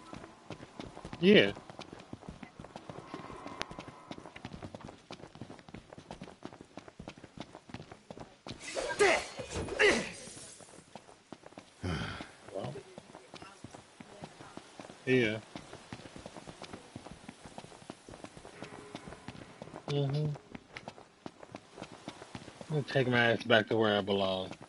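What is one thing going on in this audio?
Footsteps run quickly over wooden planks and gravel.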